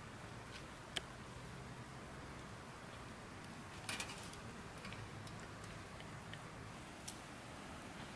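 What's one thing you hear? A few wooden knocks sound as logs are shifted on the fire.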